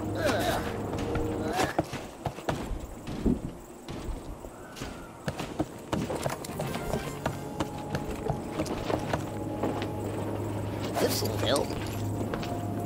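Footsteps patter on a wooden walkway.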